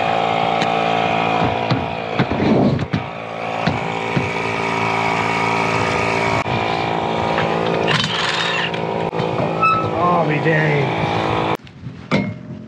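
A small air compressor hums steadily.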